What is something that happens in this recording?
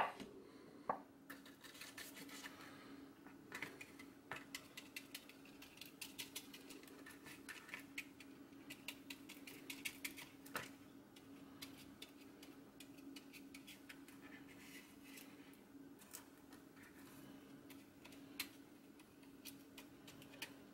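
A metal scraper scratches and clicks against a small metal part.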